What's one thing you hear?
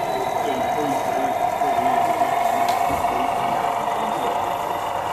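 A small model train motor whines steadily.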